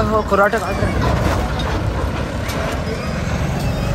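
A truck engine rumbles as the truck drives off.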